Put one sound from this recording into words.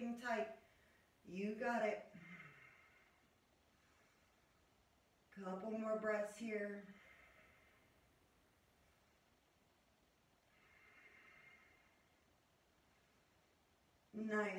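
A woman speaks calmly and softly, close by, with pauses.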